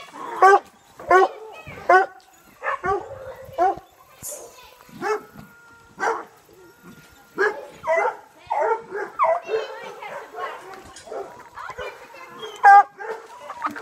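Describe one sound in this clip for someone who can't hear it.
Chickens cluck and squawk close by.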